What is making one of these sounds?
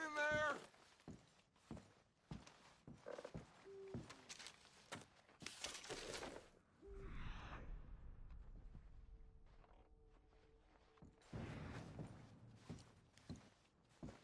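Footsteps thud softly on a carpeted floor.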